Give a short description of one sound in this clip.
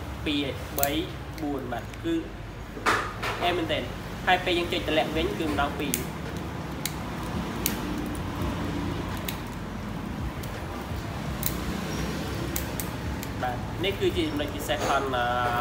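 Small plastic parts click and snap as they are handled.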